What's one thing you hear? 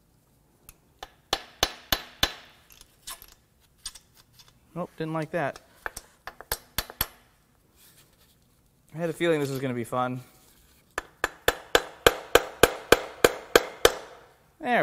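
A mallet taps sharply on metal, again and again.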